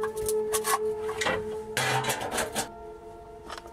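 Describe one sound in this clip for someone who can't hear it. A metal stovepipe clanks and rattles as it is handled.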